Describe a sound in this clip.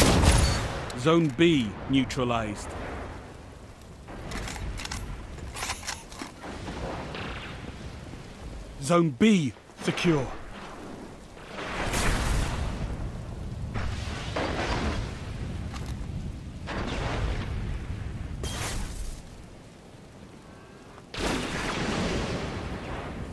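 A rifle fires sharp, loud shots now and then.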